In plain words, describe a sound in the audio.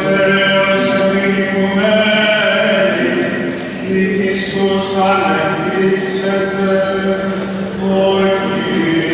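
A man chants in a steady, drawn-out voice in a large echoing hall.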